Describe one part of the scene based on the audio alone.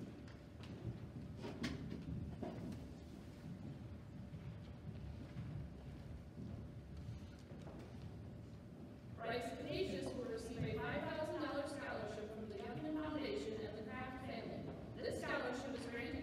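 A crowd murmurs and shuffles softly in a large hall.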